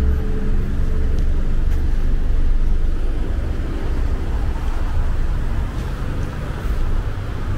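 Tyres roll on pavement.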